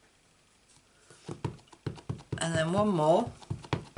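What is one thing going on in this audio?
A stamp block taps onto an ink pad.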